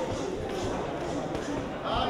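Gloved punches thud against bodies.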